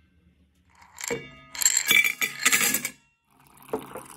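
Ice cubes clatter into a metal cup.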